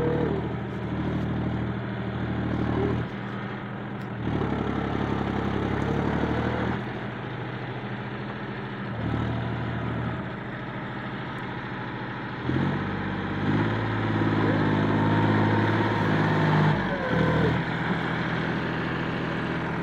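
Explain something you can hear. A rotary tiller churns through wet straw and mud.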